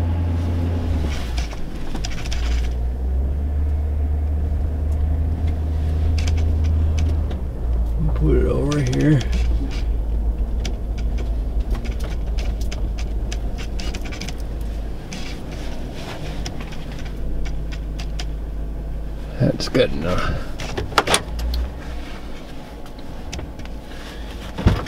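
A vehicle engine rumbles low and steady from inside the cabin.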